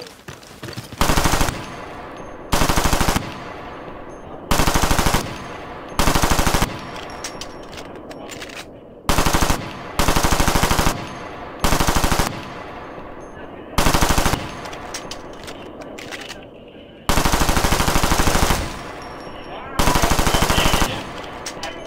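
Bursts of rapid automatic gunfire ring out, loud and close.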